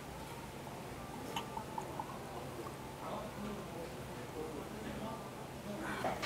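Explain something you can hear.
A man pours beer into a glass.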